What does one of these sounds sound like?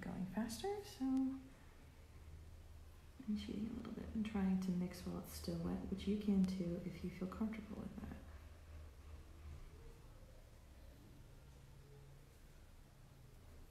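A paintbrush strokes softly across paper.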